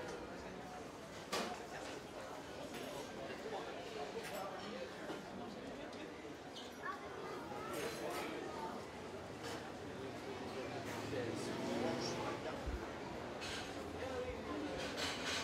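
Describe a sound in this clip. Many men and women chatter at outdoor tables.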